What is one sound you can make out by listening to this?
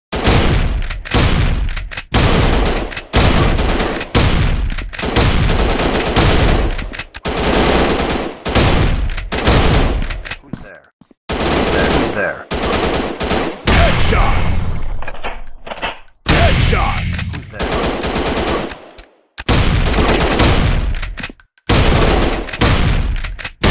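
A shotgun fires loud blasts again and again, each booming and echoing away.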